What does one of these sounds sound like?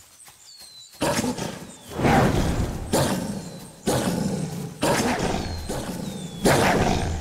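Heavy clawing blows strike again and again, each with a loud burst.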